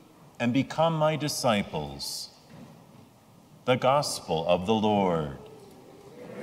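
A man speaks in a measured, chanting voice through a microphone in a large echoing hall.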